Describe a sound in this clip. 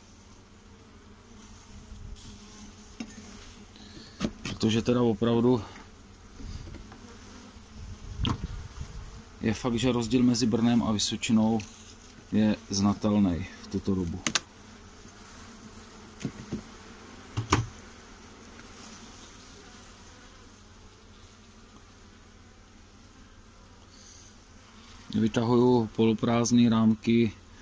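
Bees hum and buzz close by.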